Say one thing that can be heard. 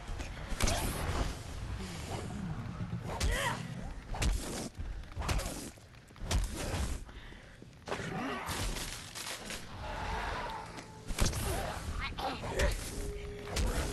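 Heavy blows thud against flesh.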